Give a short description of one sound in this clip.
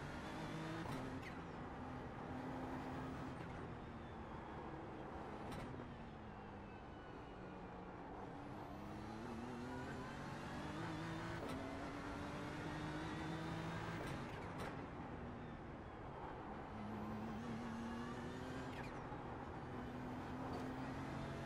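Tyres squeal through corners.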